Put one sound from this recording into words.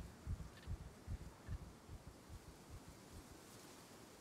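Footsteps thud softly on soil.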